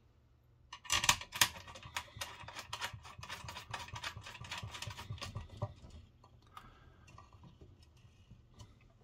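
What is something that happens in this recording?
A screwdriver scrapes and clicks against a metal plate.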